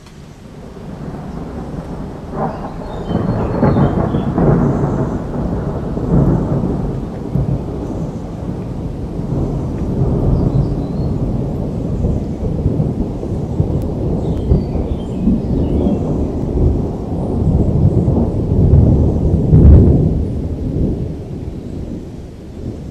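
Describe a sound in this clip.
Thunder rumbles deeply and rolls on, swelling and fading.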